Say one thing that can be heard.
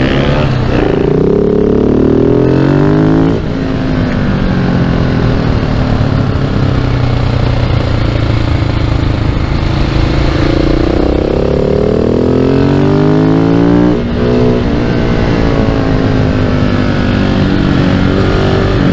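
A single-cylinder supermoto motorcycle accelerates hard and shifts up through the gears.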